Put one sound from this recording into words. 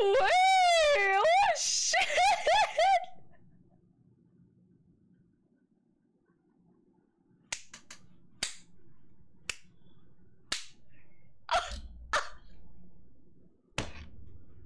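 A young woman squeals and laughs loudly close to a microphone.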